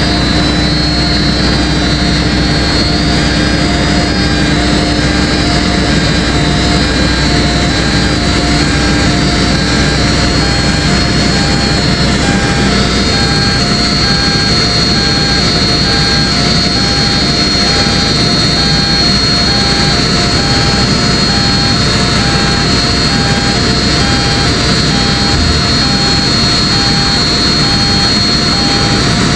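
A diesel engine of a tracked mobile crusher runs as the machine crawls forward.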